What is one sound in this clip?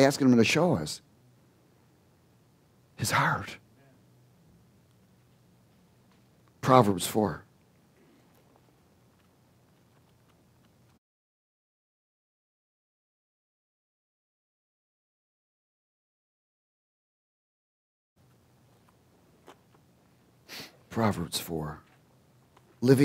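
A man speaks with animation into a headset microphone, with pauses between phrases.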